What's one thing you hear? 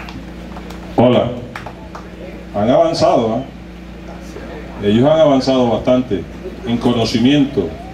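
A man speaks into a microphone over loudspeakers outdoors, with pauses between phrases.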